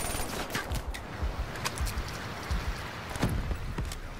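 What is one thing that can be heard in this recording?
A rifle clicks and clanks as it is reloaded.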